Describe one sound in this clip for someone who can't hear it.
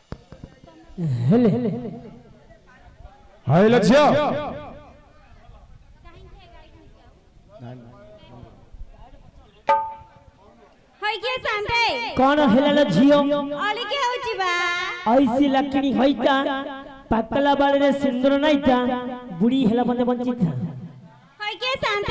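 A woman sings loudly through a microphone.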